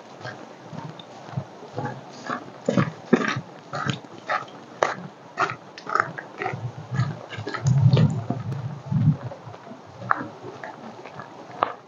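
Footsteps crunch on a gravel track, coming closer.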